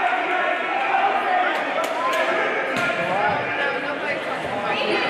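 Spectators chatter and call out across the gym.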